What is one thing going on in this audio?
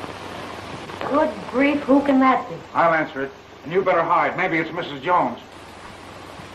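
A woman speaks with animation on a crackly old soundtrack.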